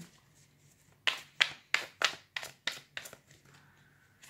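Playing cards riffle and slap together as a deck is shuffled.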